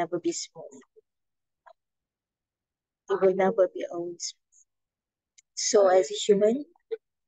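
A woman speaks calmly over an online call, in short bursts with pauses.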